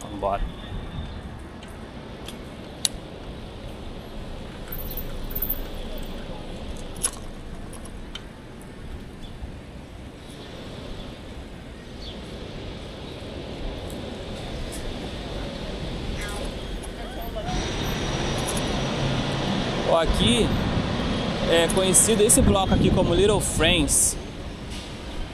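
City traffic hums in the distance.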